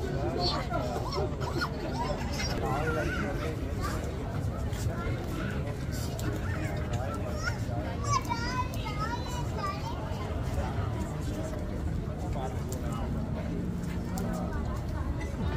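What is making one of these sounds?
Men talk and call out with animation outdoors.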